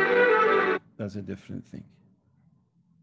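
An elderly man speaks briefly over an online call.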